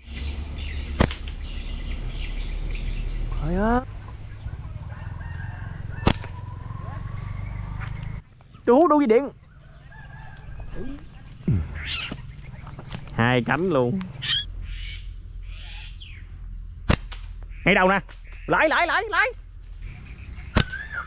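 A slingshot's rubber band snaps sharply as a shot is fired.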